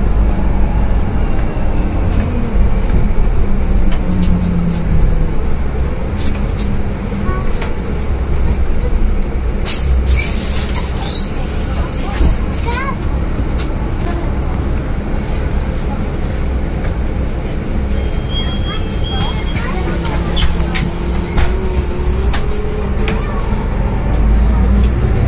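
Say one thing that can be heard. A bus engine hums steadily from inside the bus as it drives along.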